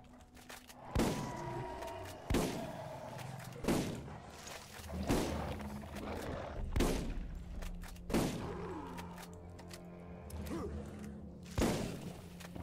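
Single rifle shots crack at intervals.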